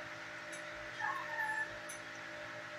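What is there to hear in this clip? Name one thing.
A dog whines softly close by.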